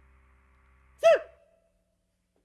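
A drum and cymbal crash loudly once.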